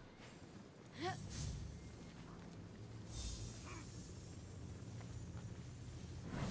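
A magical shimmering whoosh rings out several times.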